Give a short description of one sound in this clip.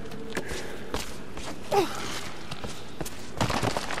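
Hands and feet scramble over rock.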